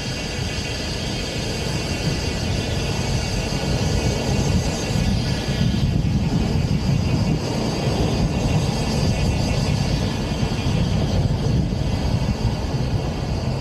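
Wind rushes loudly past an open car roof.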